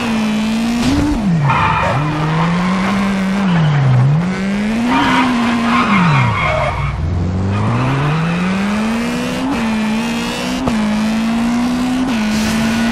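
A car engine revs high, its pitch rising and falling with gear changes.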